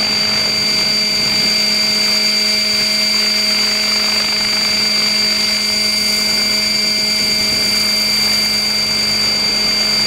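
A motor hums steadily and loudly close by.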